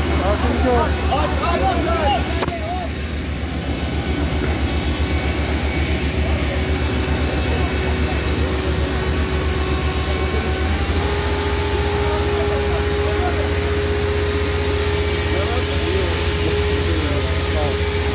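A truck engine hums loudly and steadily nearby.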